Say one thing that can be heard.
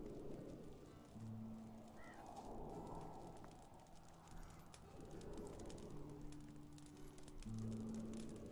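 Footsteps crunch on dry dirt and grass.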